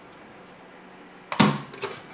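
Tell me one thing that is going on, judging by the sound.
A plastic lamp cover clicks as it is pried loose.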